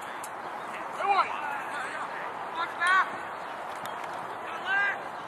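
Young lacrosse players shout to one another across an open field.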